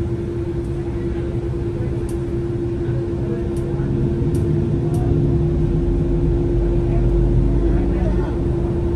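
A vehicle's engine hums steadily from inside the cabin.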